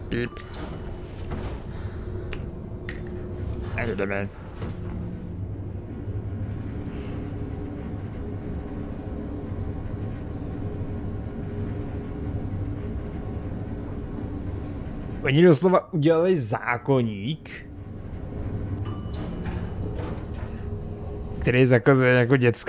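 An elevator hums steadily as it rides.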